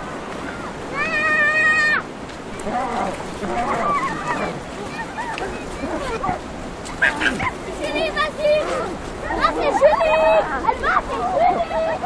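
Children shout and squeal excitedly.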